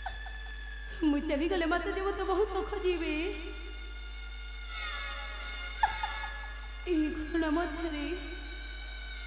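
A young man declaims loudly through a loudspeaker.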